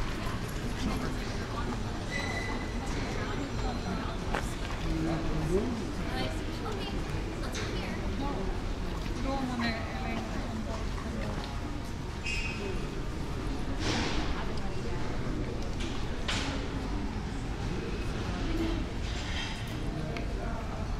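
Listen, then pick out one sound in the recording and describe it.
Footsteps tap on the cobbled street.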